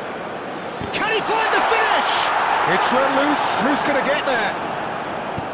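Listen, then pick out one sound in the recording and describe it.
A crowd cheers louder as an attack nears the goal.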